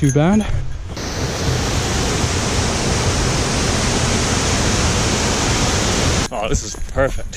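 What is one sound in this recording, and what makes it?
A waterfall rushes and splashes steadily nearby.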